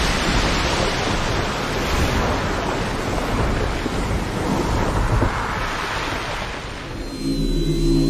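Water roars and crashes in a huge spray.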